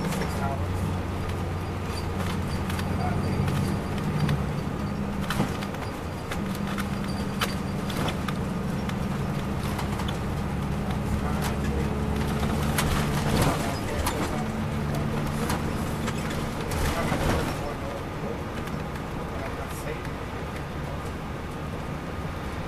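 A diesel coach engine hums from inside the bus as it drives along.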